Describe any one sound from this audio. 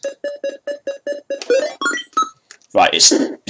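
Retro video game beeps sound in a quick, even rhythm, then rise in pitch.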